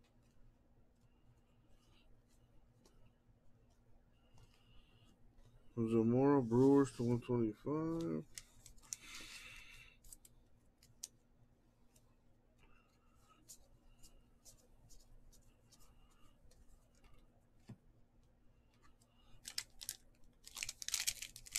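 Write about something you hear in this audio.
Trading cards slide and flick against each other in quick handling.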